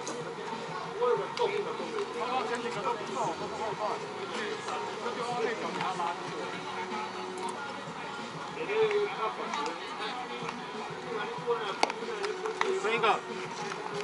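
Men call out and talk across an open outdoor field.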